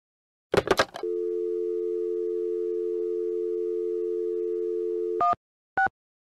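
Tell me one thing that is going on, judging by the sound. A phone dial tone hums steadily.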